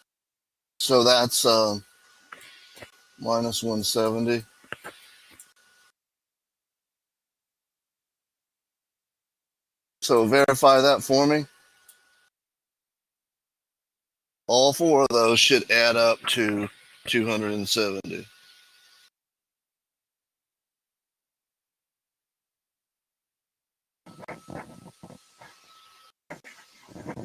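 An older man speaks calmly through a headset microphone over an online call.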